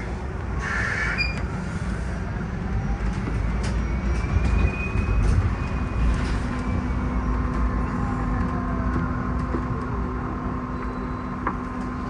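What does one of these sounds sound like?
A bus engine whines as the bus speeds up and slows down.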